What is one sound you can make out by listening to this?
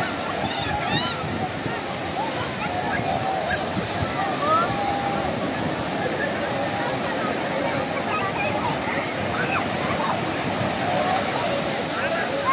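Many people chatter and call out nearby.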